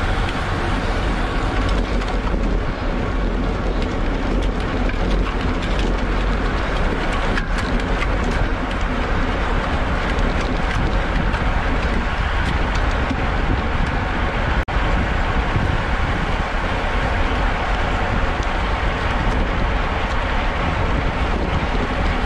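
Bicycle tyres rumble and rattle over rough pavement.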